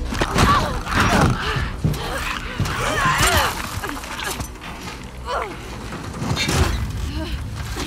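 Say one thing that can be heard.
Heavy blows and thuds land during a struggle.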